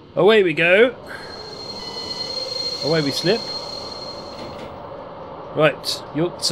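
A train engine hums and rumbles steadily.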